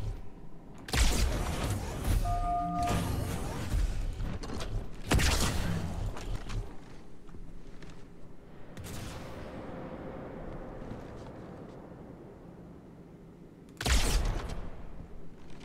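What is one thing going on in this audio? Loud blasts boom and rumble.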